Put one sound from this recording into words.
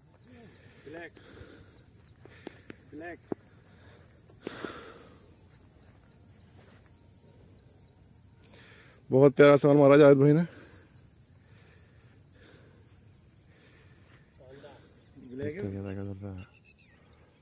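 A man speaks nearby, calmly and clearly, outdoors.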